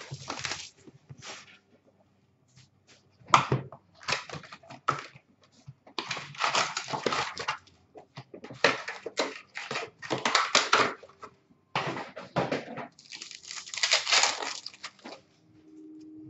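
Foil card packs rustle and crinkle as they are handled.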